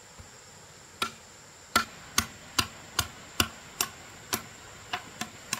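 A machete chops into bamboo with sharp, rhythmic knocks.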